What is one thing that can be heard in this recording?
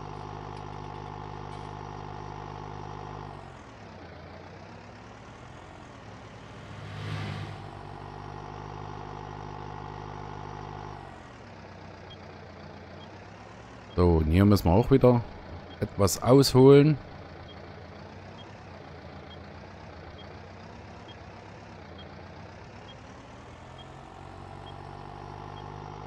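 A tractor engine hums steadily, its pitch rising and falling as it speeds up and slows down.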